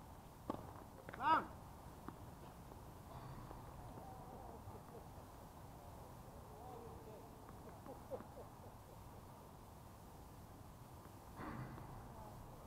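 A tennis ball pops off rackets in a rally outdoors.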